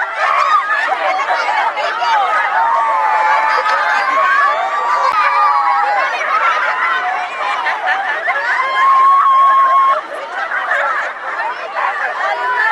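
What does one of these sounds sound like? A crowd of young women laugh, shout and chatter excitedly outdoors.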